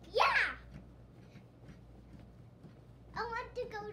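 A bed creaks and thumps as a young boy bounces on it.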